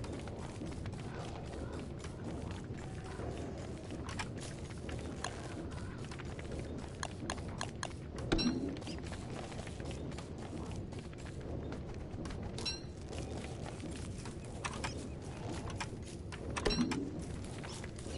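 An axe chops into wood with repeated knocks.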